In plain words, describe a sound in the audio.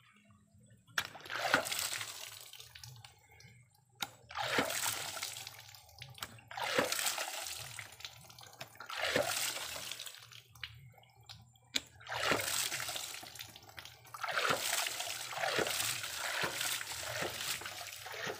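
Water spurts and splashes in bursts from a pump valve.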